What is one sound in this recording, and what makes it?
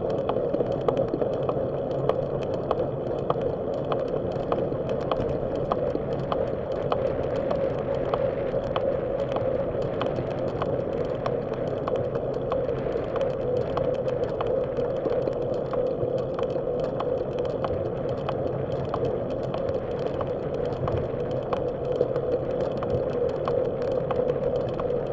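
Bicycle tyres roll steadily over smooth pavement.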